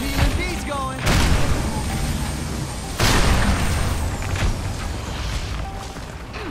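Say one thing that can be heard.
A gun fires in bursts.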